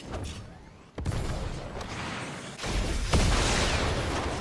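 A rocket fires with a loud roaring rush.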